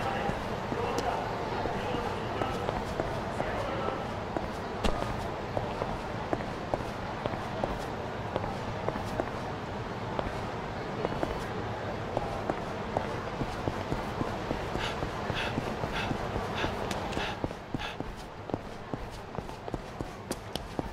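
Footsteps tap steadily on a hard floor, then quicken into running.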